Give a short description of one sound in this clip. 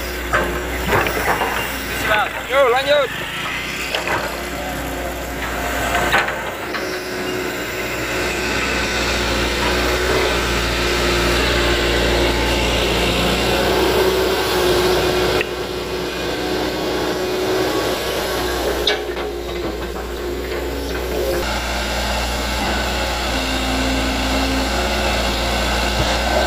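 An excavator's diesel engine rumbles steadily nearby.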